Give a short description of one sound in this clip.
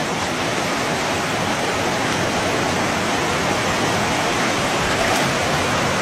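A large fish thrashes and splashes at the water's surface.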